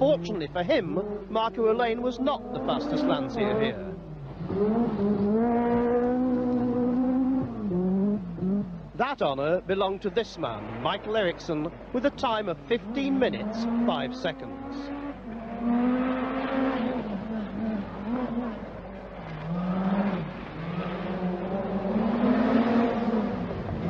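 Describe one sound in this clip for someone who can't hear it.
A rally car engine roars loudly, revving up and down as it races past.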